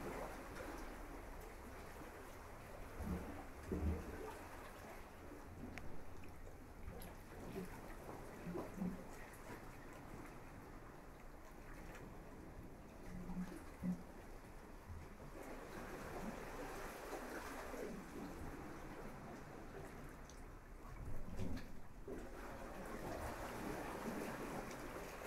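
Wind rustles through palm leaves.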